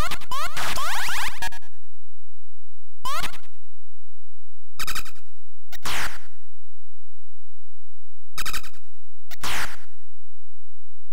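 Electronic game sound effects buzz and sweep in short bursts.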